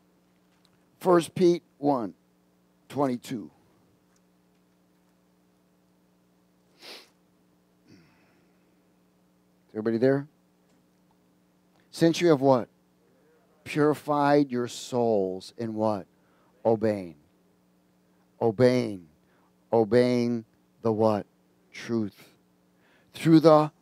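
A middle-aged man speaks slowly and deliberately through a headset microphone, with long pauses.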